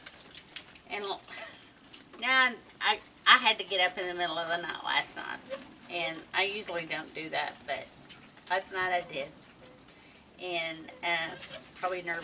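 A woman talks animatedly, close by.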